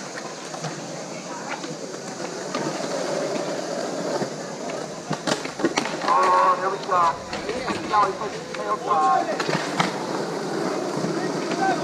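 Skateboard wheels roll and rumble on concrete in the distance.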